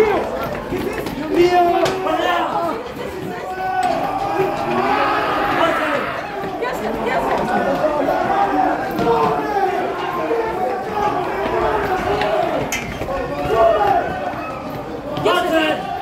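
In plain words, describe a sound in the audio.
Many people talk and shout loudly all around, close by.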